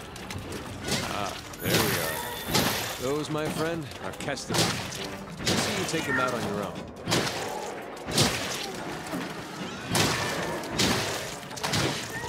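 A reptilian creature squawks and screeches.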